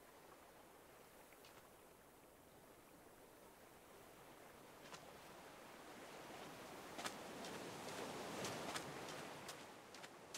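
Water splashes softly as a swimmer paddles through it.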